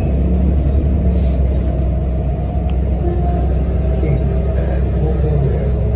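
A bus engine drones low and steady while the bus drives along.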